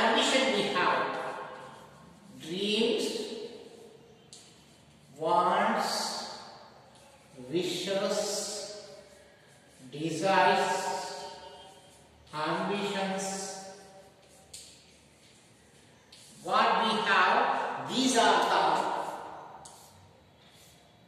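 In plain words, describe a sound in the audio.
A man speaks slowly and clearly nearby, in a room with some echo.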